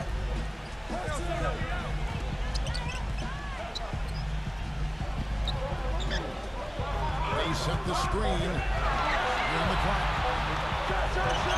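A large crowd murmurs and cheers in an echoing arena, growing louder toward the end.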